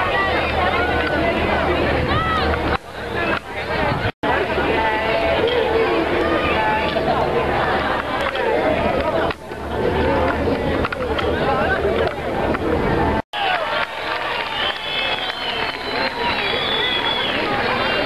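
A large outdoor crowd talks and cheers loudly all around.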